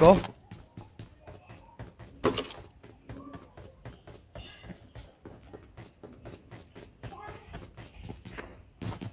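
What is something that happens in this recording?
Footsteps run quickly and steadily on a hard floor.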